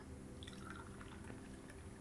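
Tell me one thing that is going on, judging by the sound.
Tea pours into a glass.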